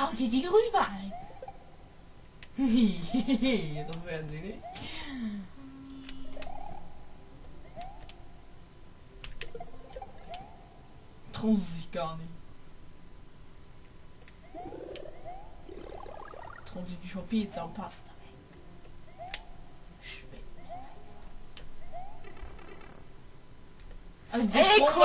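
Short springy game sound effects chirp again and again.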